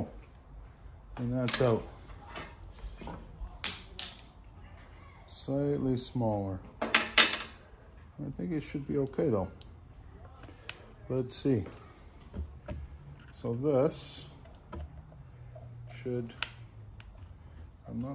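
Small metal parts click and tap as hands fit them together.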